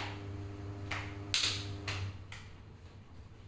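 Bare feet slap and thump on a hard floor.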